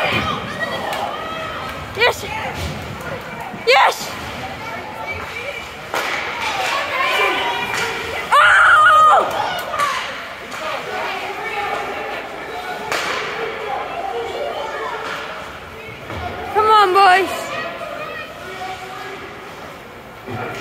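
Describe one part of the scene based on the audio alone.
A crowd of spectators shouts and cheers in a large echoing rink.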